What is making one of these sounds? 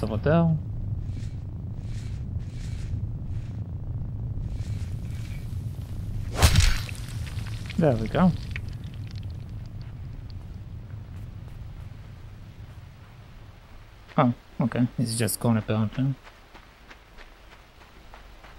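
A boy's footsteps pad softly over grass.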